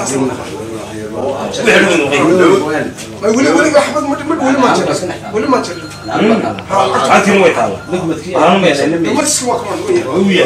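An elderly man speaks animatedly and close by.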